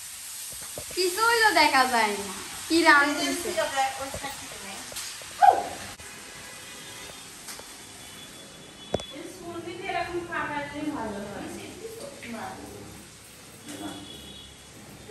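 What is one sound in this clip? Women talk close by with animation.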